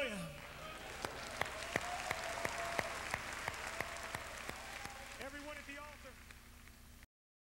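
A large crowd claps in rhythm.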